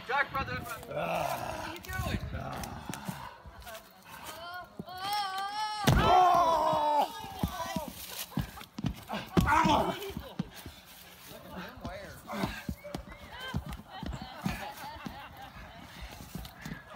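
A young man shouts with animation outdoors.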